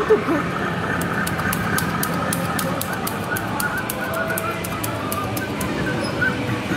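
Clicks rattle rapidly from an arcade game.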